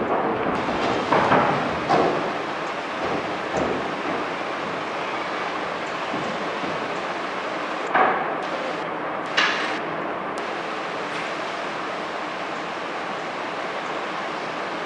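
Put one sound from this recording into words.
A child speaks on stage in a large echoing hall.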